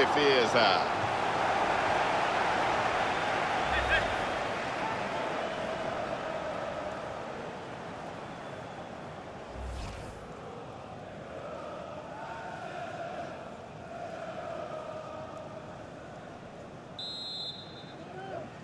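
A large stadium crowd roars and cheers, loud at first and then slowly dying down.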